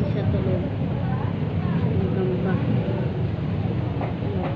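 A young woman talks quietly, close by.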